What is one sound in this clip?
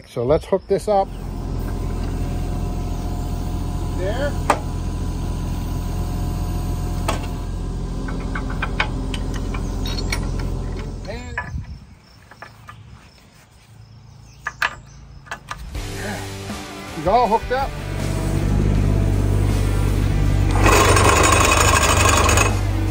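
An excavator engine idles with a steady low rumble.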